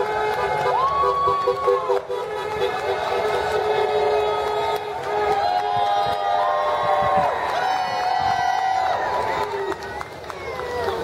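A crowd of men and women chant and sing loudly outdoors.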